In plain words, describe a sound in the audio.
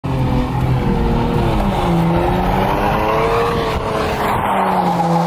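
Wind rushes loudly past a moving car.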